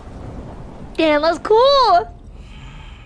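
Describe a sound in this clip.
A young woman squeals in a high, rising and falling voice.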